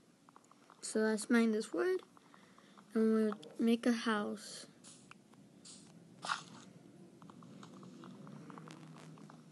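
A wooden block breaks apart with a hollow crunch.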